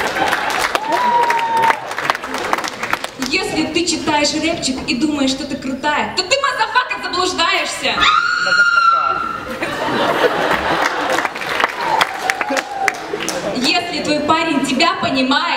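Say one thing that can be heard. A young woman sings into a microphone, heard through loudspeakers in a large hall.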